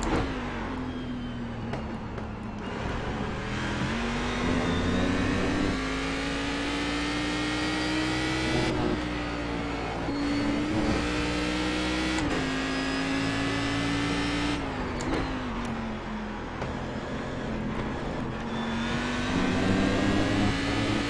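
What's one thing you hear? A racing car engine roars steadily, its pitch rising and dropping with gear changes.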